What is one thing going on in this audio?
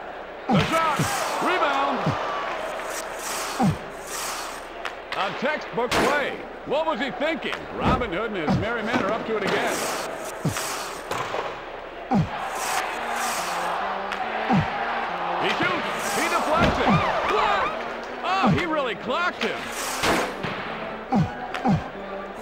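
An arena crowd cheers and roars steadily.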